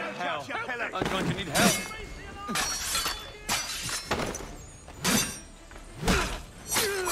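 Blades and muskets clash and thud in a fight.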